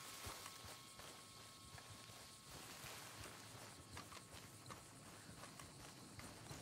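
Footsteps swish slowly through tall grass.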